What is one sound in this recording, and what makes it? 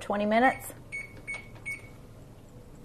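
An oven control panel beeps.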